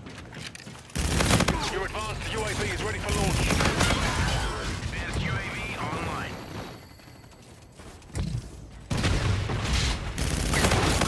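An automatic gun fires in rapid bursts.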